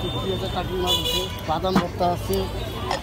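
A clay lid clinks against a pan.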